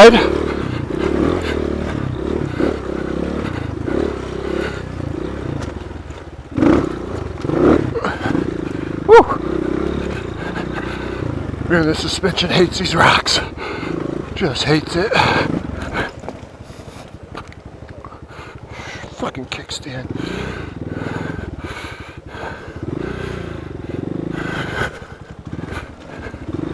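A dirt bike engine revs and putters up close.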